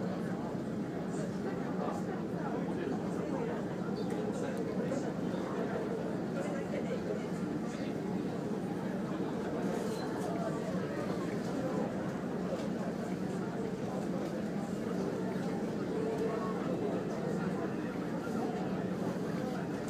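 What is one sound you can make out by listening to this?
Open water rushes steadily past a moving boat.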